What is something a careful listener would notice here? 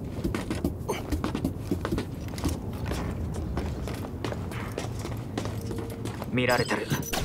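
Footsteps clank on a metal grate.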